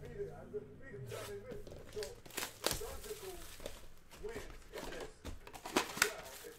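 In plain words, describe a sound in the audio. Cardboard packaging rustles and crinkles as hands open a box.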